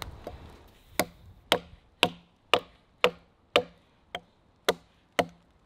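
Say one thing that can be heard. A knife chops into a log with sharp, regular knocks.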